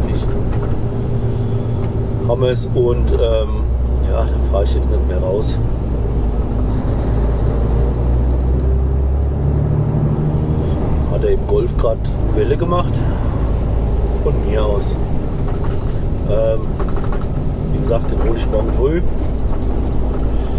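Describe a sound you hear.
Tyres roll on a wet road.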